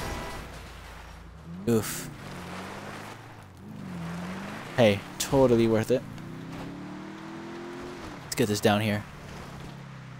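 Tyres crunch over dirt and gravel.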